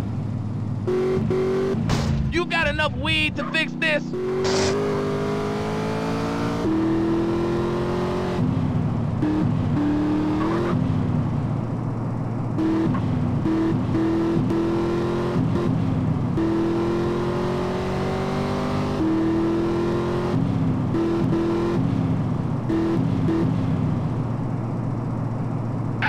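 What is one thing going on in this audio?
A car engine revs up steadily, dropping in pitch with each gear change.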